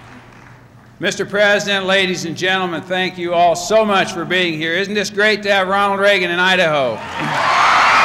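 A man speaks loudly and with energy through a microphone in a large echoing hall.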